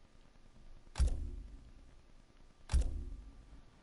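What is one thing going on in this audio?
A game menu clicks as options are selected.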